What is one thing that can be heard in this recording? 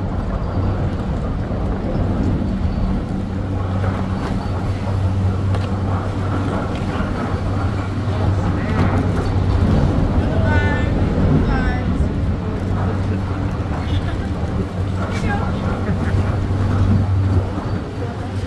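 A chairlift's machinery hums steadily.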